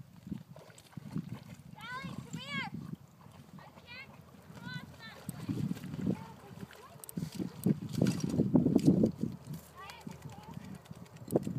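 Water splashes and sloshes close by.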